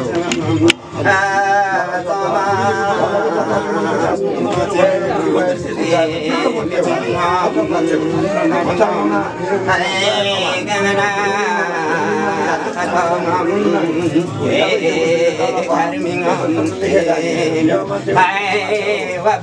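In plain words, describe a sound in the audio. An elderly man chants in a steady, rhythmic voice close by.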